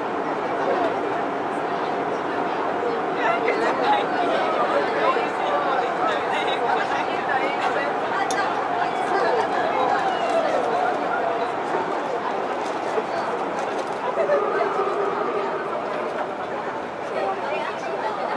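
An electric subway train hums and whines steadily close by.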